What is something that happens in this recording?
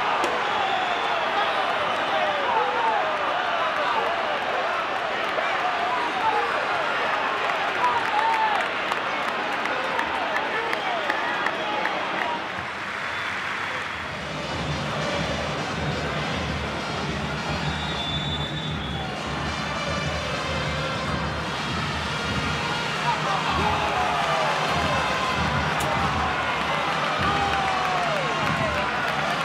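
A large stadium crowd cheers and whistles loudly throughout.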